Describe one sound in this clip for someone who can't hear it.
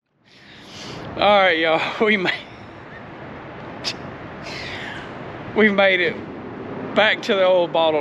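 A middle-aged man talks with animation close to a handheld microphone, outdoors.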